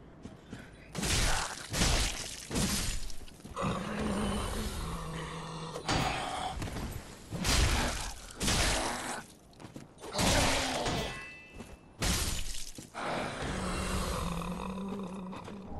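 Heavy blades swing and strike in loud, sudden bursts.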